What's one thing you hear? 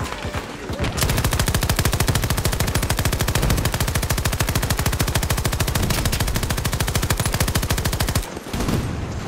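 A rifle fires rapid bursts at close range.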